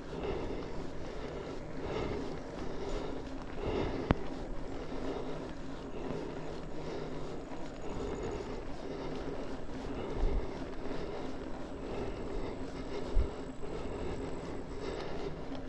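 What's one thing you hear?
Wind buffets against a microphone.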